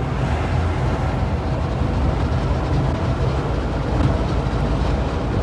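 A vehicle's engine rumbles steadily.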